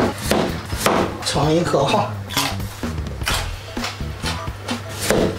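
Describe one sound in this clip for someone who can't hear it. A knife chops through carrots on a cutting board with sharp knocks.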